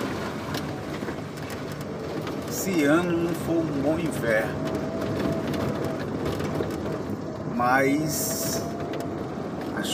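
Tyres roll and hiss over a wet road.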